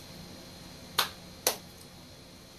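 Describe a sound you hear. A man claps his hands twice.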